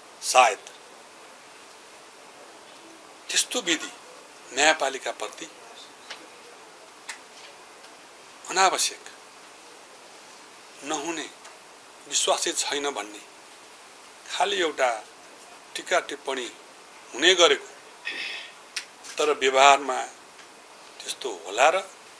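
A middle-aged man speaks calmly in short bursts, close to a microphone.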